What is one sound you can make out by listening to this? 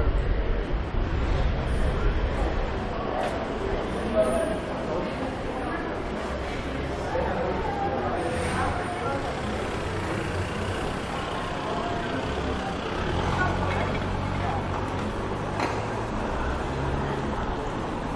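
Street noise and distant voices carry through a city street outdoors.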